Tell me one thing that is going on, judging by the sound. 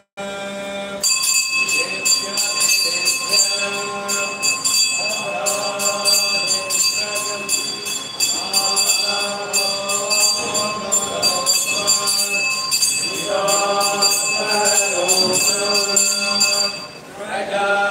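A hand bell rings rapidly and steadily.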